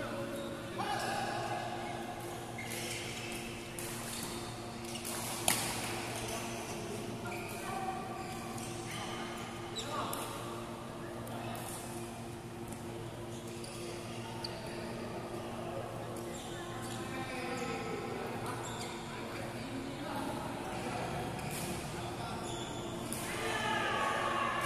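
Rackets smack shuttlecocks in a large echoing hall.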